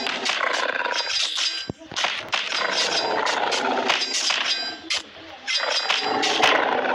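A large dinosaur roars and growls loudly.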